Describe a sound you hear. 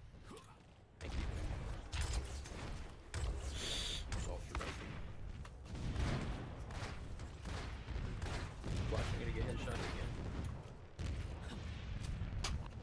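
Weapons fire in rapid, overlapping bursts.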